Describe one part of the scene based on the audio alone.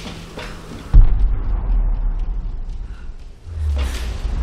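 A deep rumbling boom sounds and fades.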